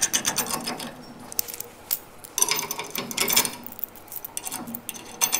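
A man scrapes at metal in short bursts.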